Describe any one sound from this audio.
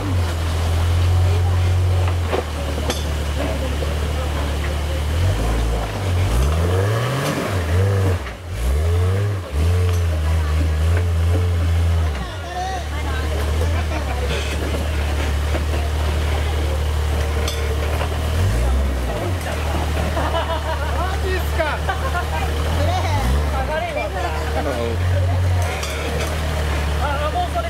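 An off-road vehicle's engine idles low and revs up and down in bursts.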